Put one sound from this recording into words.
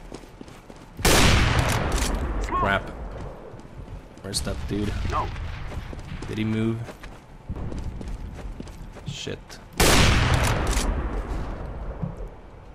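A sniper rifle fires a loud, sharp shot that rings out and fades.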